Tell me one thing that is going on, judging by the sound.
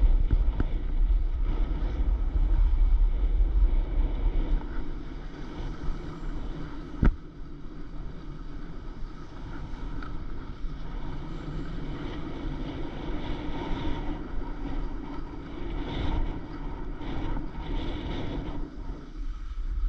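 Wind rumbles across a microphone outdoors.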